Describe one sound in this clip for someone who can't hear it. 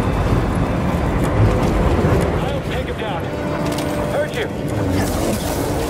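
An energy blade hums and swooshes.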